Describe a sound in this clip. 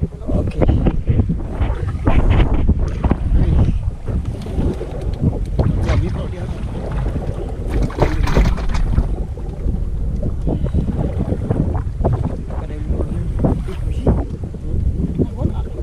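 A fishing line rustles and swishes as a man pulls it in by hand.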